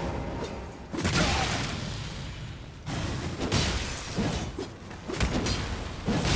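Sharp blows strike in a fight.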